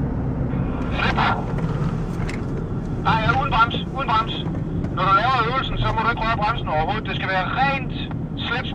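Tyres squeal sharply through fast corners.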